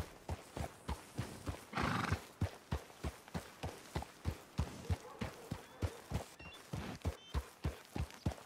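A horse's hooves thud in a quick, steady rhythm on dry ground.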